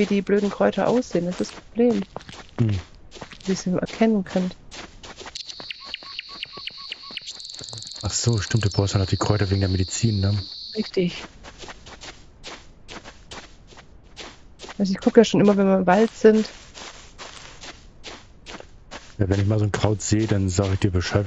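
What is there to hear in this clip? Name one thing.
Footsteps crunch through grass and brush at a steady walking pace.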